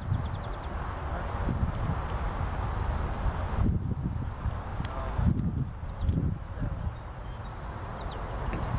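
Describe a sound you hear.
Wind buffets the microphone outdoors in gusts.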